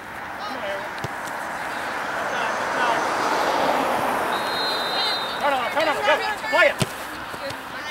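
A soccer ball thuds as it is kicked.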